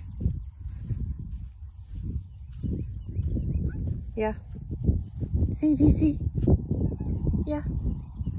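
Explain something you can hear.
Footsteps rustle and thud on dry grass close by.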